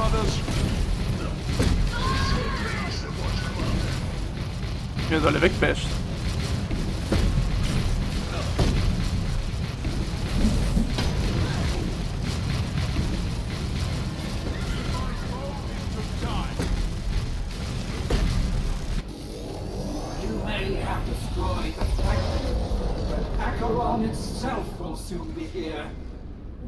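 Gunfire and blasts clatter in a battle.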